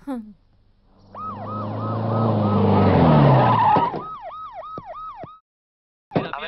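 A car engine runs and the car pulls up.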